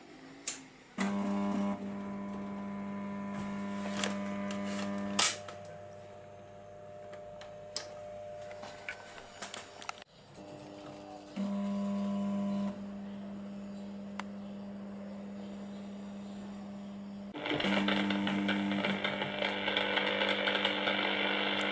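Fluorescent lamp ballasts hum.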